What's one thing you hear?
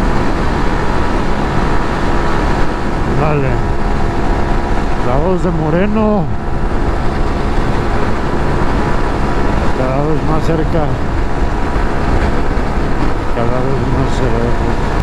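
A motorcycle engine drones steadily and revs up and down now and then.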